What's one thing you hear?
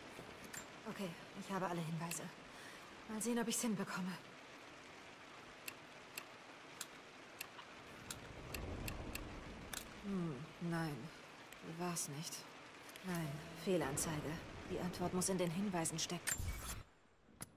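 A young woman mutters quietly to herself.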